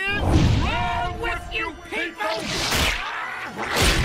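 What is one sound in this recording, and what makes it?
A monster roars and wails in a deep, booming voice.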